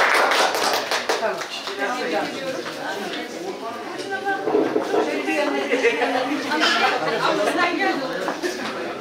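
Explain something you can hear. People chat and talk at once nearby.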